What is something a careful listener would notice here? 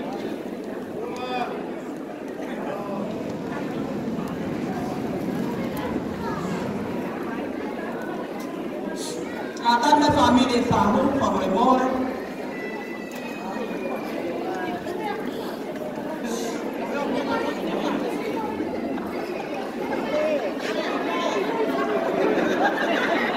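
A crowd of guests chatters throughout a large echoing hall.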